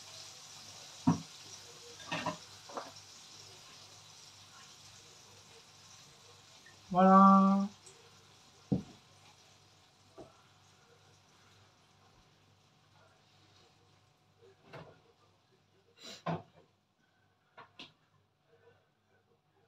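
Slices of food clink softly on a ceramic plate.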